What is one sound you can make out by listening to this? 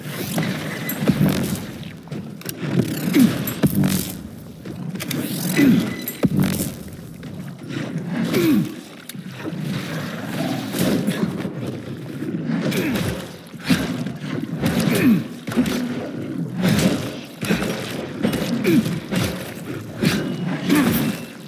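A monstrous creature growls and roars up close.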